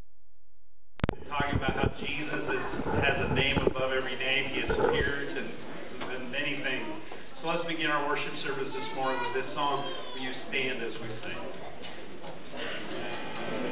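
A band plays softly with guitars.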